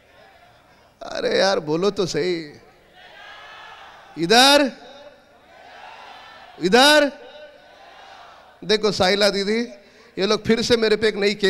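A man shouts with animation through a loudspeaker in a large open space.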